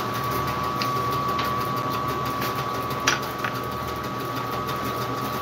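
A band saw motor hums steadily.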